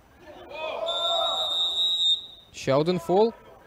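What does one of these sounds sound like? A referee's whistle blows a long steady blast.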